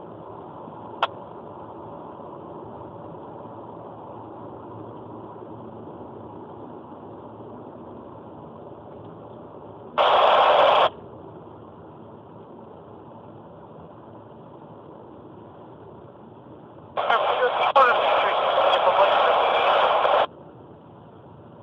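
A car drives steadily along a highway, its engine and tyres humming inside the cabin.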